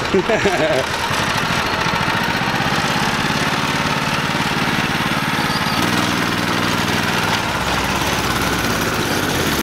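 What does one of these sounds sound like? A small kart engine runs with a loud buzzing drone.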